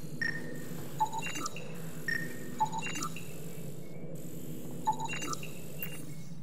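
A handheld scanner chirps and beeps in quick electronic bursts.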